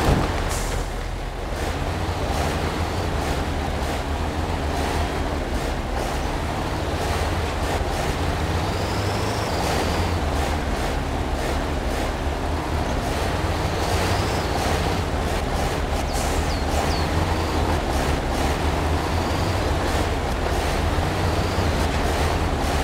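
A heavy truck engine rumbles steadily as the truck drives.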